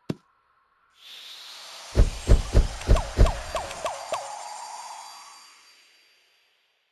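A bright game chime rings out with a run of loud ringing notes.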